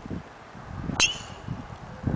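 A golf driver strikes a ball off a tee with a sharp click.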